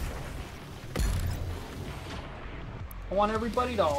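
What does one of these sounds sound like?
A heavy energy weapon fires with a loud blast.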